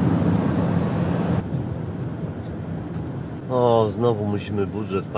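A car engine hums and tyres roll steadily on a road, heard from inside the car.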